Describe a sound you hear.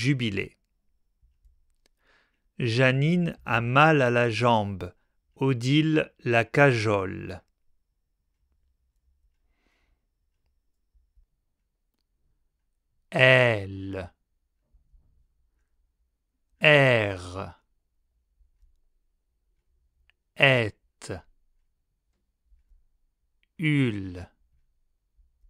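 A man speaks clearly and slowly into a close microphone, pronouncing words with pauses between them.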